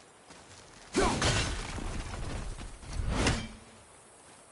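An axe whirls back and lands in a hand with a thud.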